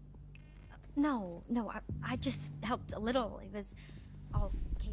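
A young woman replies shyly and hesitantly.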